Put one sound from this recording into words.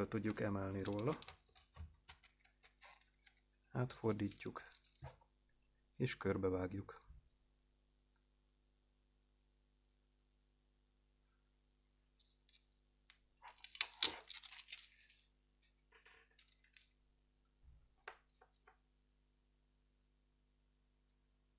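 Clear plastic film crinkles between fingers.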